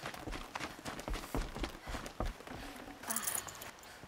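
Footsteps thump up wooden stairs.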